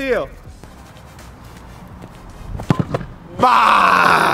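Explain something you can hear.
A ball is kicked with a thump.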